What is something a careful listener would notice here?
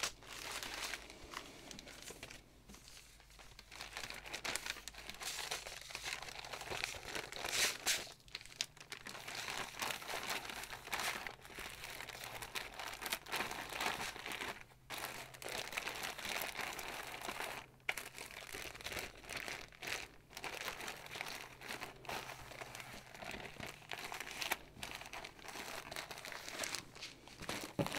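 Plastic bags crinkle and rustle as they are handled up close.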